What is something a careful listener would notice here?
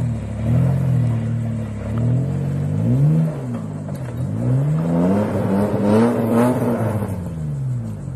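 An engine revs hard, rising and falling in pitch.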